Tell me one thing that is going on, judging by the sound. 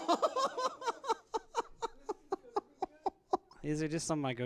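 A young man laughs in rapid bursts close to a microphone.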